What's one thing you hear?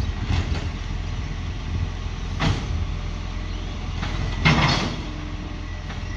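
A truck's mechanical arm whirs and clanks as it lifts a bin.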